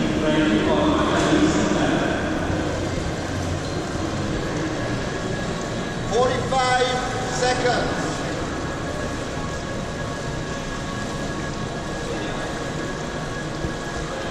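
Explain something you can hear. Voices of people at the poolside murmur and echo around a large indoor pool hall.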